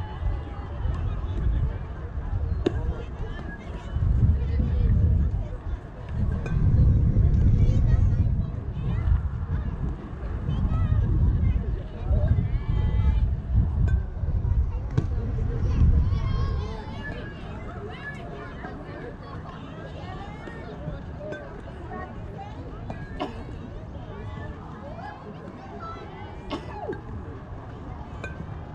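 Young players call out across an open field in the distance.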